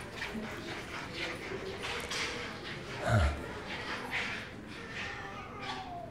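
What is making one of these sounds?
Footsteps walk away down a corridor.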